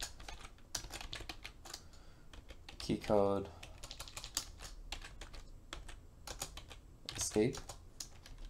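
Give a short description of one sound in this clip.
Keys on a keyboard click rapidly.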